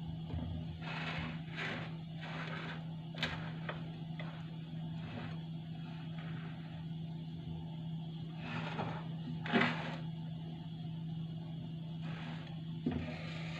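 A spoon scrapes against a glass bowl.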